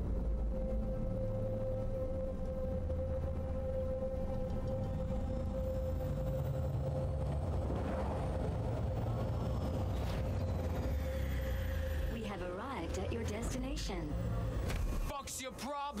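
A vehicle hums steadily as it rides along.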